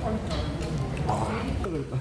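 A man groans with his mouth open.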